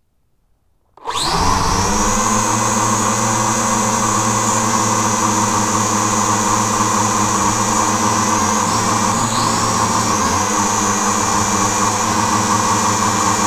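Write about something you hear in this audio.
Drone propellers whir loudly and steadily up close.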